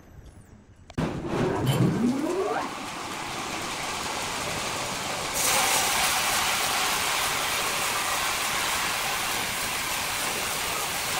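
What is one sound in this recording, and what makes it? A large band saw motor starts up with a rising whine, then runs with a steady roar.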